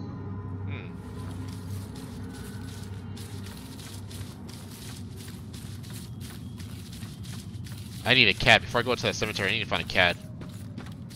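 Footsteps run quickly over soft ground.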